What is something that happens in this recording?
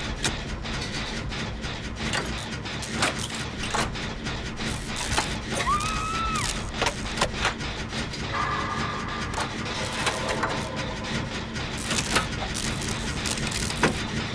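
Metal parts clank and rattle as a machine is repaired.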